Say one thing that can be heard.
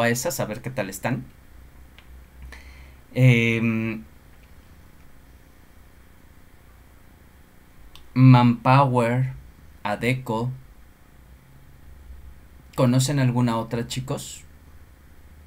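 A man speaks in short bursts through an online call.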